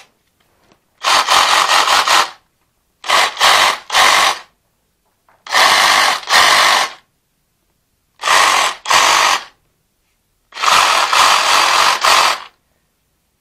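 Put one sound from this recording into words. A cordless reciprocating saw runs without load in short bursts.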